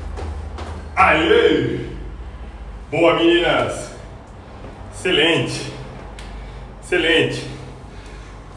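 A young man speaks loudly in short bursts close by.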